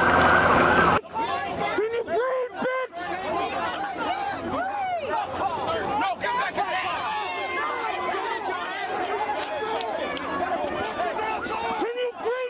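Many men and women talk and shout close by.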